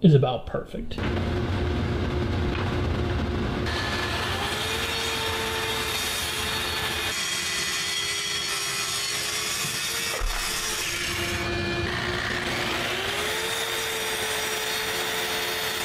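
A plunge saw whines steadily as it cuts through wood.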